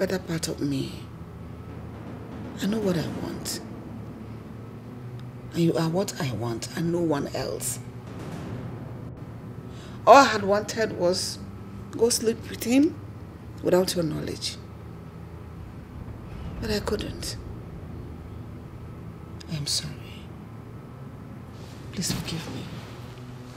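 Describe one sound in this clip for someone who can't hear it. A middle-aged woman speaks with emotion, close by.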